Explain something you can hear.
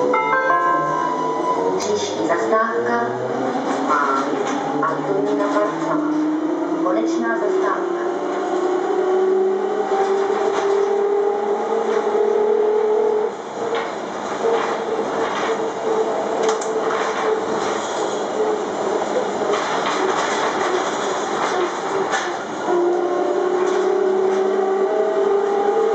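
An electric bus motor whines, rising in pitch as the bus speeds up.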